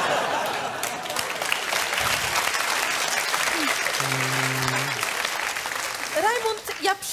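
A studio audience laughs and applauds loudly.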